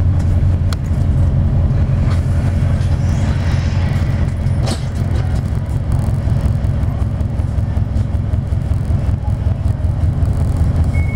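A vehicle engine rumbles steadily from inside.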